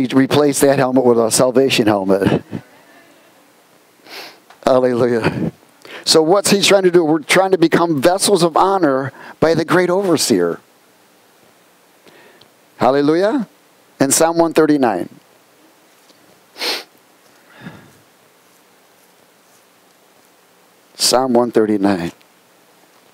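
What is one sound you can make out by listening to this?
A middle-aged man speaks with animation through a headset microphone.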